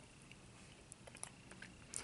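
A man chews and smacks his lips close by.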